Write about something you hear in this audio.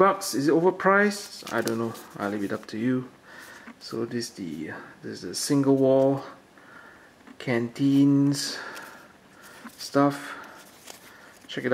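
A paper tag rustles between fingers.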